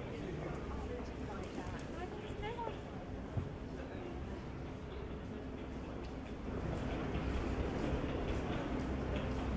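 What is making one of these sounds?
Footsteps of passersby tap on the pavement.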